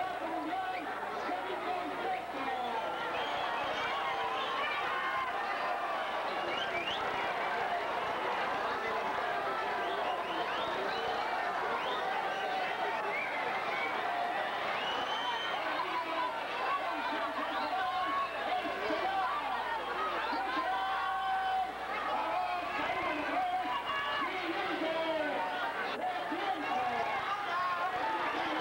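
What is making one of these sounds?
A large crowd shouts and chatters loudly in a big echoing hall.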